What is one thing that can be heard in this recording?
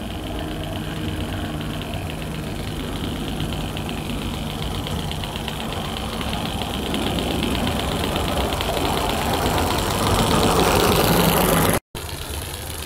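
Metal wheels clatter on a small track.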